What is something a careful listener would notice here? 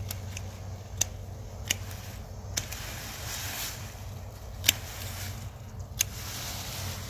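Stems snap sharply now and then.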